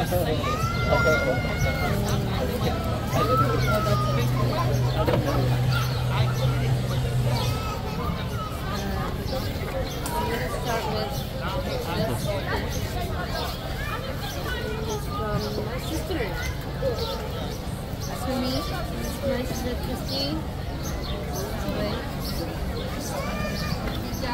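A young woman talks with excitement close by.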